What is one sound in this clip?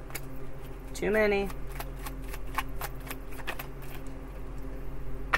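Playing cards riffle and tap as they are shuffled.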